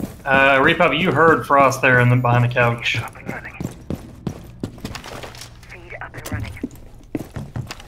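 Footsteps thud on wooden stairs and floors.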